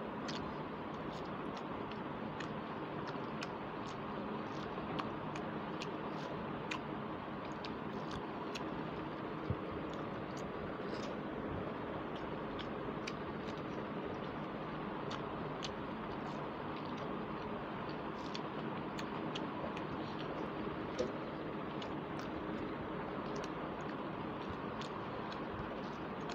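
Fingers squelch through rice and curry on a plate.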